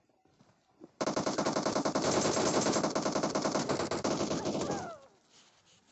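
Rapid gunfire rattles loudly at close range.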